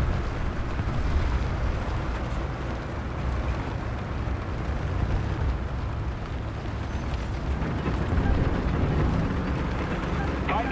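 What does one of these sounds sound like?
Tank tracks clatter over rough ground.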